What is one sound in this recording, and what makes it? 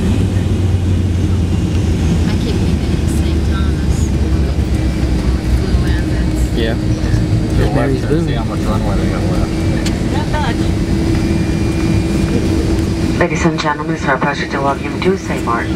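Tyres roll over a wet runway.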